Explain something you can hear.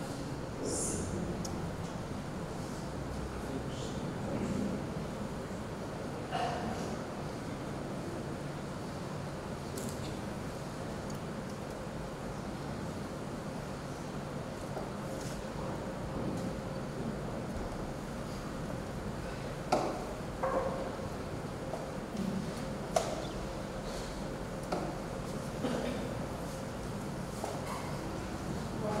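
A man murmurs quietly into a microphone in an echoing hall.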